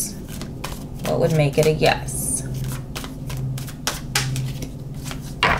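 Playing cards riffle and flap as they are shuffled by hand.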